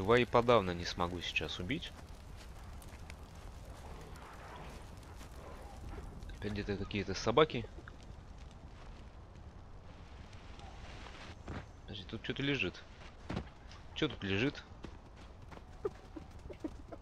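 A burning torch crackles softly.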